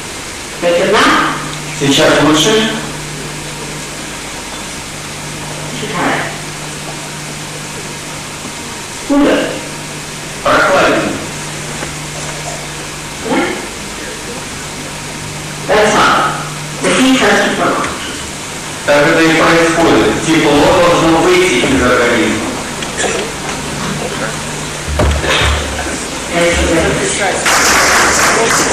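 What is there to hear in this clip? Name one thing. A woman speaks slowly into a microphone, with long pauses.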